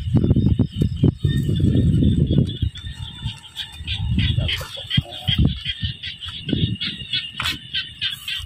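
Footsteps crunch and rustle through dry grass.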